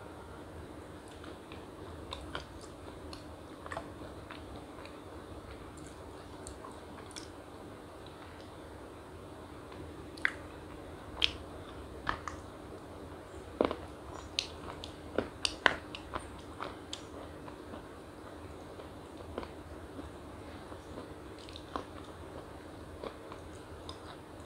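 A young woman chews with soft, wet mouth sounds close by.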